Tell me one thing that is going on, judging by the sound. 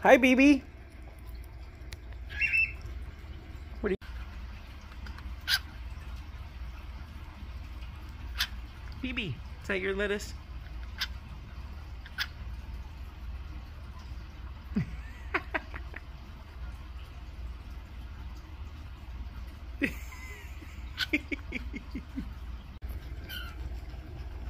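A cockatiel chirps and squawks close by.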